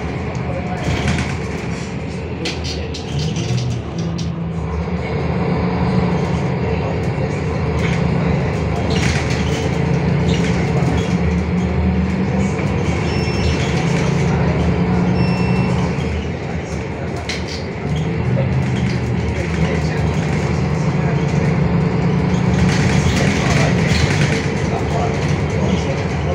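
A bus engine hums and rumbles steadily while driving.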